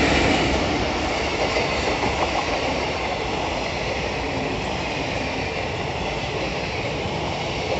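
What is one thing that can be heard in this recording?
A passenger train rushes past close by with a loud, steady rumble.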